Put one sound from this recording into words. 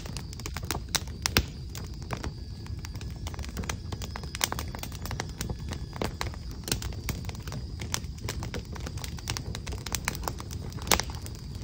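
Fingers tap and rustle on a fabric bag close up.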